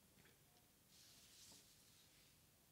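Paper sheets rustle softly.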